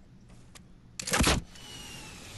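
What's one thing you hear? A gun fires a single loud shot in a video game.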